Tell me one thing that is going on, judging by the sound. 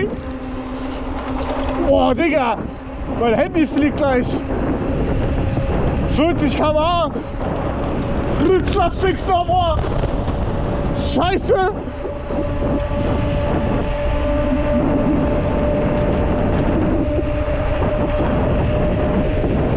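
An electric bike motor whines steadily.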